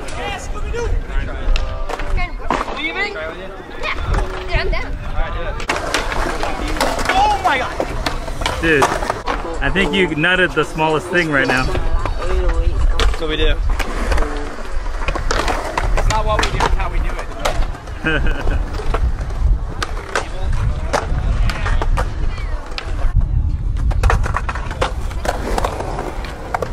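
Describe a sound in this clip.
Skateboard wheels roll and clatter on concrete.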